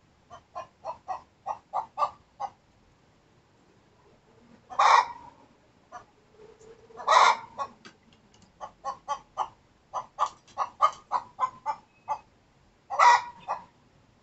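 Hens cluck in short repeated bursts close by.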